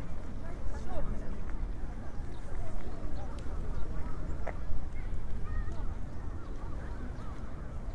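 People chatter faintly in the distance.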